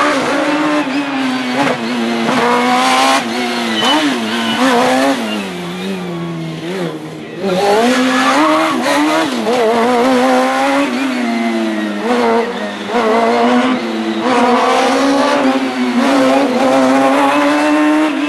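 Tyres squeal on tarmac as a car turns sharply.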